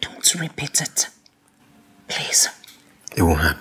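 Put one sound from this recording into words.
A woman speaks softly and closely.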